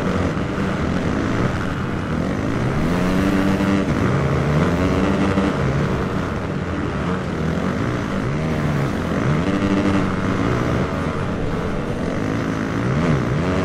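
A motocross bike engine revs and whines, rising and falling in pitch as it shifts gears.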